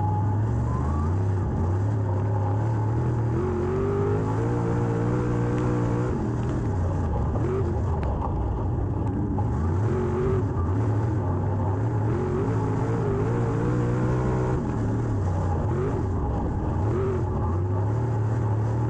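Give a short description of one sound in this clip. A race car engine roars loudly up close, revving up and down through the gears.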